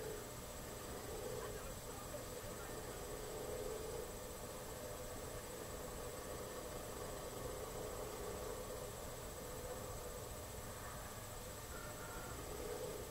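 A motorcycle engine hums steadily as it rides, heard faintly through a television speaker.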